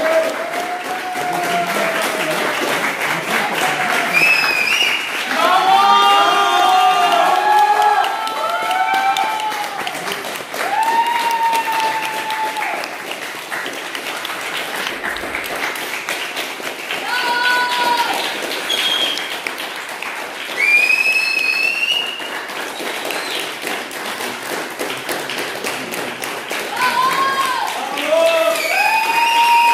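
People clap their hands in an echoing hall.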